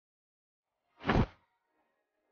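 A single gunshot cracks sharply.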